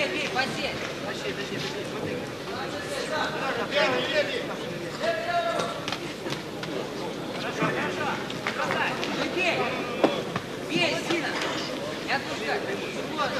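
Boxing gloves thud against bodies in quick punches.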